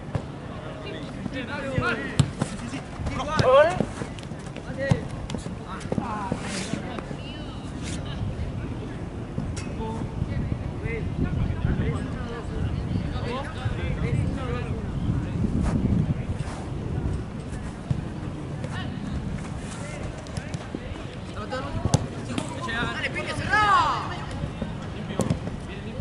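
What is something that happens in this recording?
Young men shout to each other across an open pitch outdoors.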